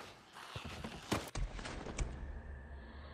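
A menu clicks and whooshes open.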